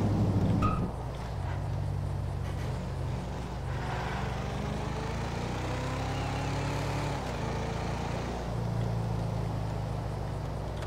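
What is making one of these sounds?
A car engine hums steadily as a vehicle drives fast.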